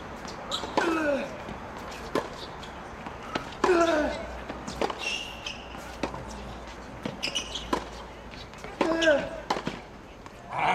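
A tennis ball is struck sharply with a racket, again and again.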